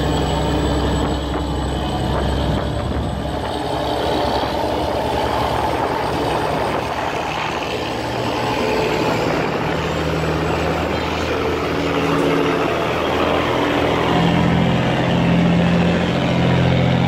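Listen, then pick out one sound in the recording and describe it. A boat engine rumbles and roars loudly nearby.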